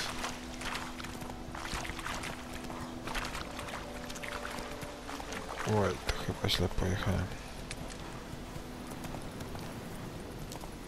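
A horse gallops with rhythmic hoofbeats.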